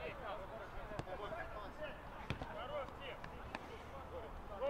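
A football is kicked with sharp thuds.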